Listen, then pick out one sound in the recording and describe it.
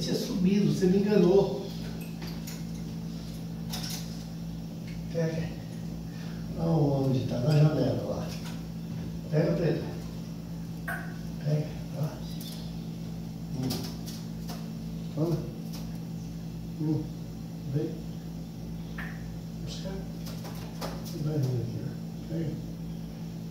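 A man speaks calmly indoors nearby.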